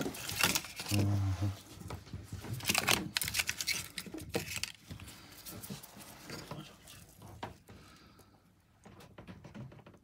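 A blade scrapes against metal.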